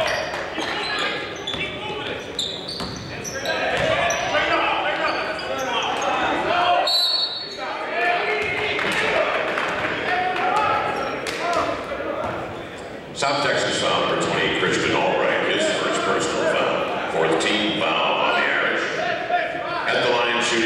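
A ball bounces on a hardwood court.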